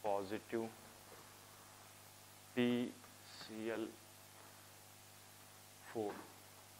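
A young man speaks in short bursts, close by.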